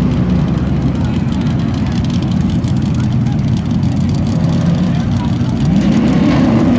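Two car engines idle with a deep, loud rumble.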